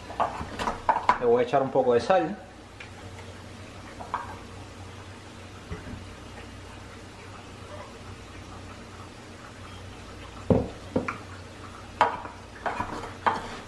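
A wooden pestle thumps and grinds in a wooden mortar.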